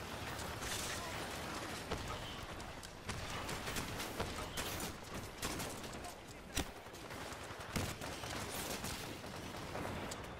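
Electric bolts crackle and zap.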